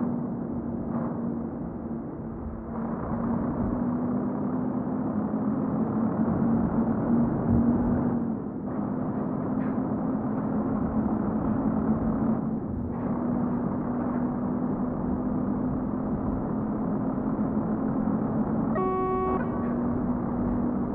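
A truck engine rumbles steadily as the truck drives.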